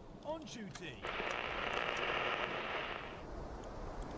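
A torpedo launches with a rushing hiss.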